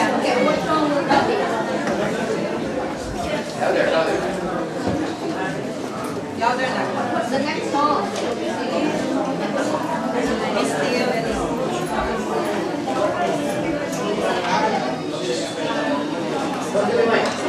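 A woman asks questions into a microphone.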